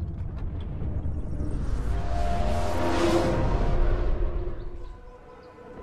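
A rushing whoosh swells and then cuts off.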